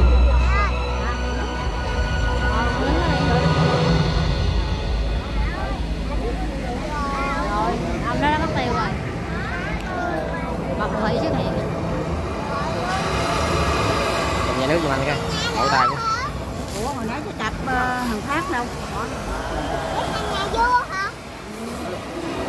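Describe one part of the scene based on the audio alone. Fountain jets spray and splash water.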